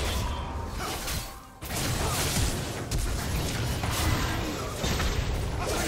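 Weapons clash and strike in rapid hits.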